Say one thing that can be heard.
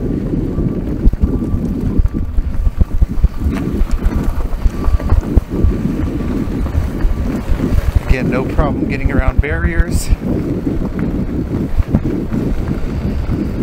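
Tyres crunch and rattle over a gravel track.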